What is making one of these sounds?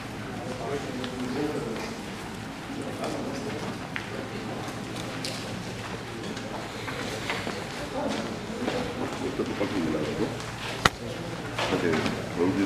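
Several men and women talk at once in a room with a slight echo.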